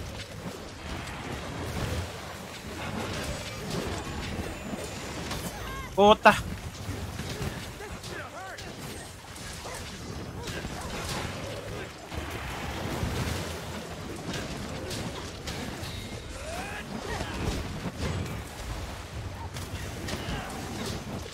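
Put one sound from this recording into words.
Fiery explosions burst with loud booms.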